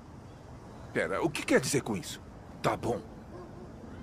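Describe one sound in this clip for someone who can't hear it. An older man speaks with animation nearby.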